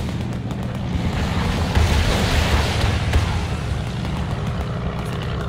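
A loud explosion booms and rumbles.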